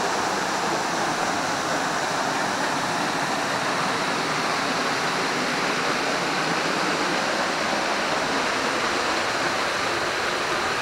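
A waterfall splashes steadily onto rocks nearby.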